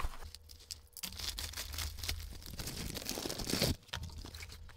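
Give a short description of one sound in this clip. Plastic packaging rustles and crinkles as it is torn open.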